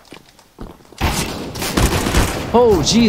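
A rifle fires a loud rapid burst of shots.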